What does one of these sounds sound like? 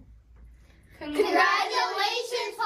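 Children shout and cheer together loudly.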